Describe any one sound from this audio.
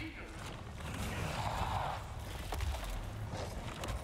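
A monstrous creature growls deeply and angrily.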